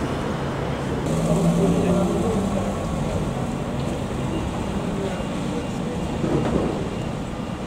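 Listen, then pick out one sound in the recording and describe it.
A city bus pulls away.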